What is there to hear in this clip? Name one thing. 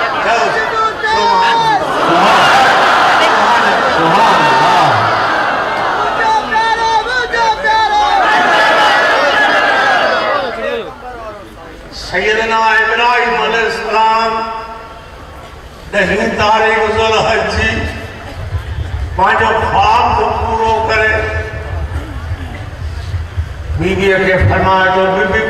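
An elderly man preaches passionately into a microphone, heard through a loudspeaker outdoors.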